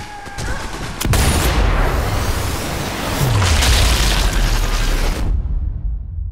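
A rifle fires with a sharp, loud crack and a deep rumbling echo.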